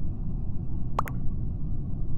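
A short electronic blip sounds.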